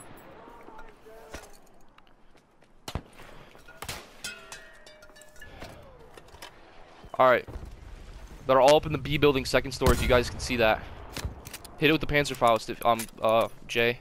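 A rifle's bolt and magazine clack during reloading.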